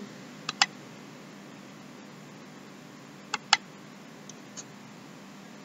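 A plastic puzzle cube clicks sharply as its layers are twisted.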